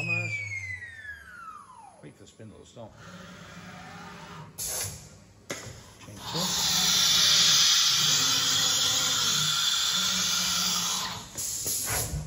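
A machine's motors whir as a cutting head moves along its rails.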